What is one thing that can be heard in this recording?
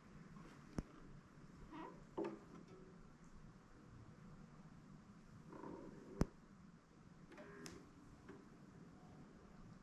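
A wooden guitar knocks and rattles as it is turned over in the hands.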